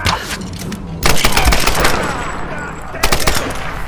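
A rifle fires repeatedly.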